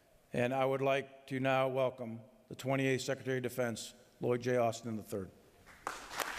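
A man speaks firmly through a loudspeaker in a large echoing hall.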